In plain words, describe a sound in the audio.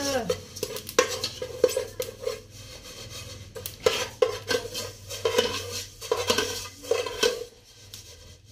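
A spoon scrapes and rattles grains in a metal pot.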